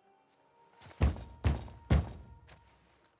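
Knuckles knock loudly on a wooden door.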